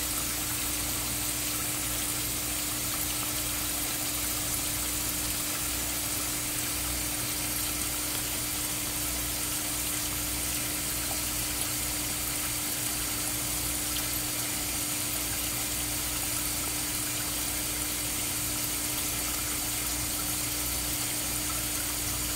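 A pump hums steadily.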